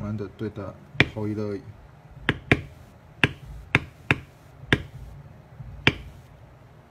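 A mallet taps sharply on a metal stamping tool, striking leather.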